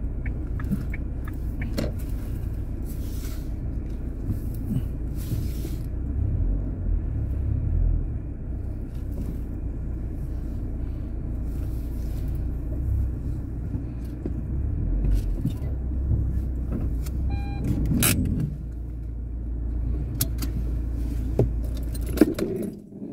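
A car engine idles and rumbles low from inside the car.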